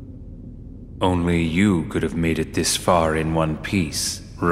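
A man speaks calmly and coolly, close by.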